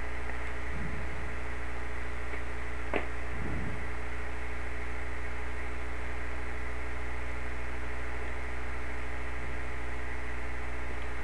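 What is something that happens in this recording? A synthesizer plays a steady, droning chord.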